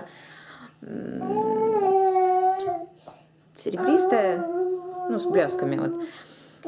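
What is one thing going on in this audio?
A young woman sings long, held notes close by.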